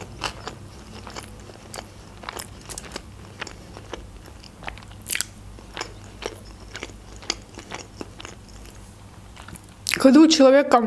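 A young woman chews food with soft, wet smacking sounds close to a microphone.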